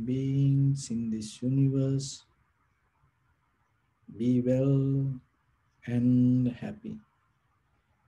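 A man speaks slowly and calmly into a microphone, with long pauses.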